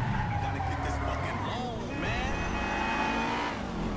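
Tyres screech on pavement as a car turns sharply.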